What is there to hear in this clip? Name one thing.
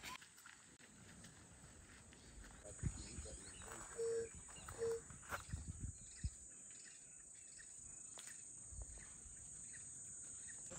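Bare feet tread softly on a dirt path.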